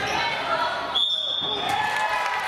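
A referee blows a short, shrill whistle in an echoing hall.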